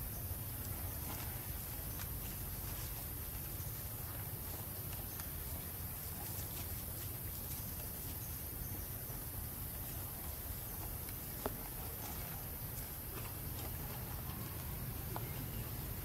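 A plastic cup crinkles and crackles as a baby monkey handles it.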